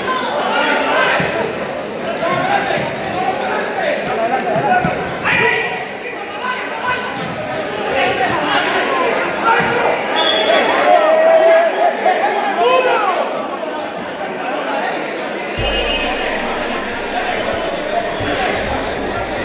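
Men shout loudly to each other across the court.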